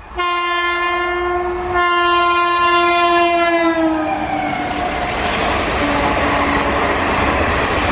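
Passenger coaches clatter past at speed on the rails.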